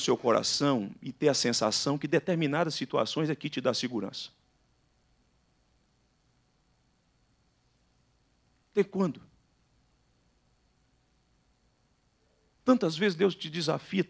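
A middle-aged man speaks with emphasis into a microphone, with pauses between phrases.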